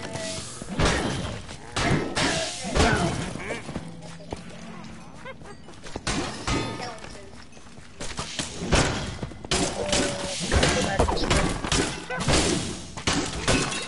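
Swords slash with sharp hits and whooshes in a game fight.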